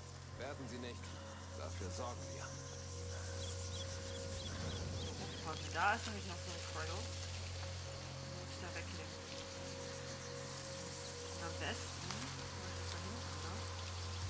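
A young man talks casually into a microphone.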